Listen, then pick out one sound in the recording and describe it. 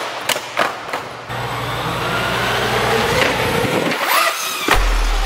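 An electric motor whines at high pitch, rising as it revs.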